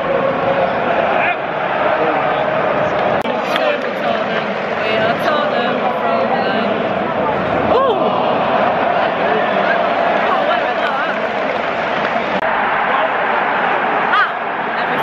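A large crowd sings and chants loudly in a big open stadium.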